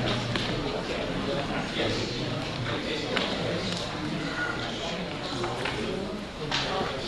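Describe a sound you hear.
Many men and women talk at once in a large echoing room.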